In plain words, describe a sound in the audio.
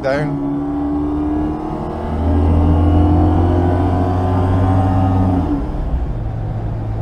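A small car engine hums and revs steadily from inside the car.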